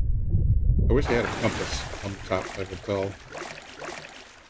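Water splashes and laps at the surface.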